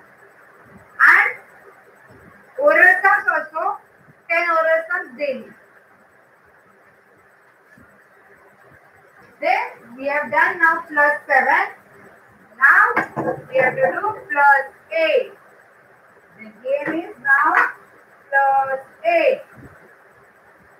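A woman speaks calmly and clearly, close by, as if teaching.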